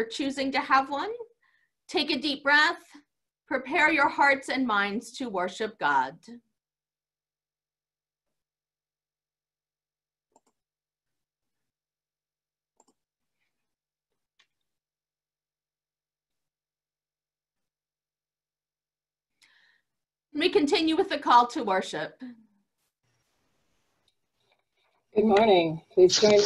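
A woman speaks calmly through an online call, pausing now and then.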